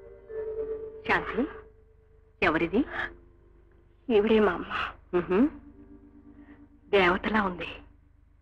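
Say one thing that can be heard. An older woman speaks with animation, close by.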